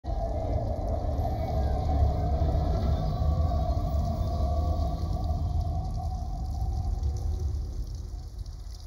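A train rumbles past overhead.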